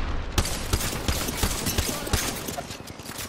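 A gun fires in rapid, sharp bursts.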